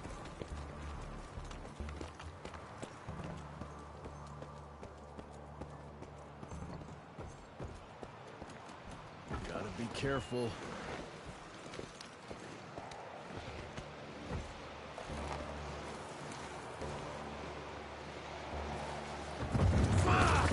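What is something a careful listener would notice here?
Boots step on rock and creak on wooden planks.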